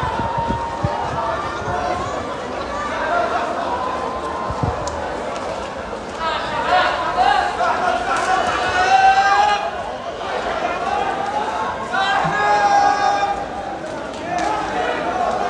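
A crowd murmurs and chatters in the distance.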